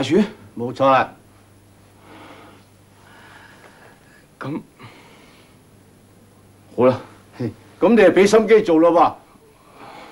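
A man speaks tensely, close by.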